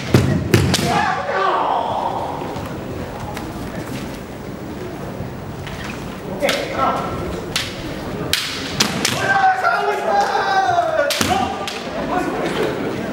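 Fencers shout loudly in a large echoing hall.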